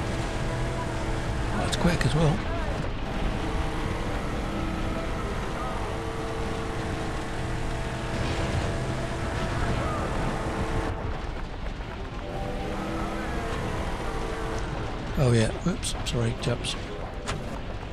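A game vehicle's engine hums steadily.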